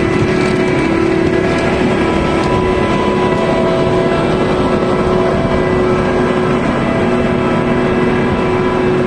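Beets rattle and tumble along a clattering elevator.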